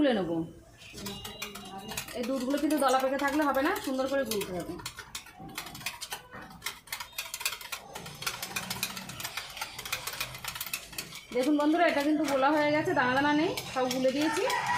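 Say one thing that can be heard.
A wire whisk clicks and scrapes rapidly against a bowl.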